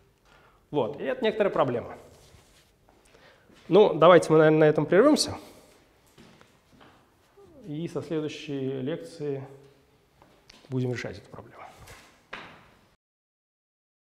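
A young man lectures calmly.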